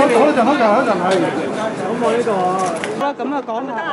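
Reporters shout questions at a man at close range.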